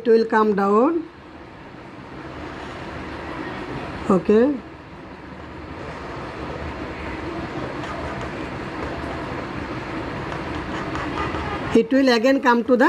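A marker scratches on a whiteboard.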